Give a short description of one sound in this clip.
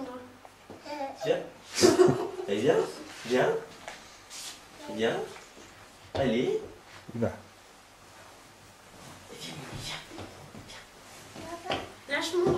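A young girl talks and laughs close by.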